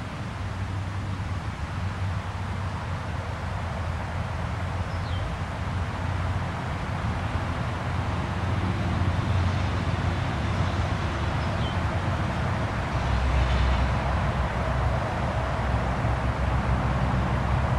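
Wind blows steadily outdoors, rustling the leaves of trees.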